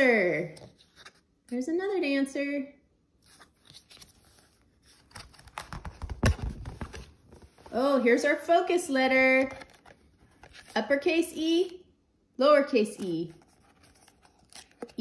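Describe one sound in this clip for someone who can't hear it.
Stiff cards slide and tap on a board.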